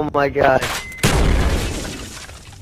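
A mine explodes with a loud, deep boom.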